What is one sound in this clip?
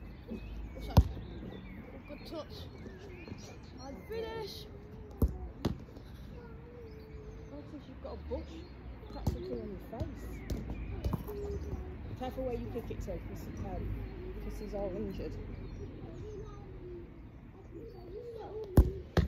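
A football is kicked with sharp thuds now and then.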